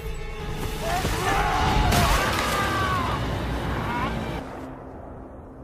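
A man screams loudly in pain.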